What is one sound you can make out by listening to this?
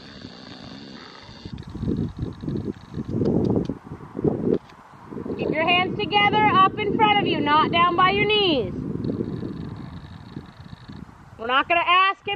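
A horse's hooves thud softly on grass at a trot.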